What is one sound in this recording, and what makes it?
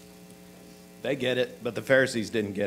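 A middle-aged man speaks with animation through a microphone in a reverberant room.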